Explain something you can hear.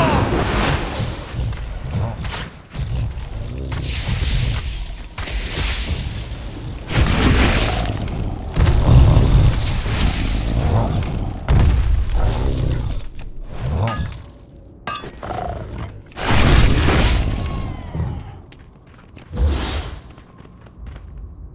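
Magic spells crackle and whoosh in bursts.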